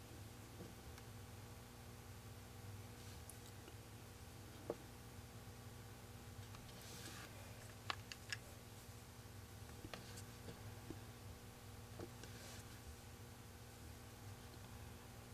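A tool tip taps softly on a wooden surface.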